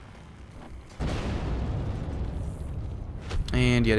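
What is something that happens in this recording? A spell bursts with a loud roaring rush.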